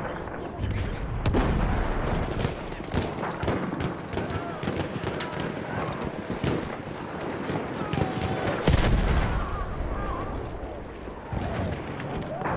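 Gunshots crack in the distance.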